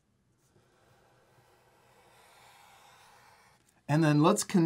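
A felt-tip marker squeaks and scratches across paper.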